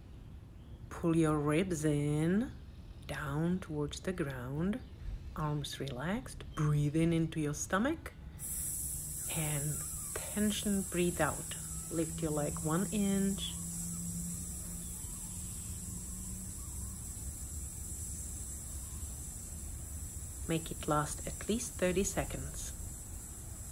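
A woman speaks calmly, giving instructions close by.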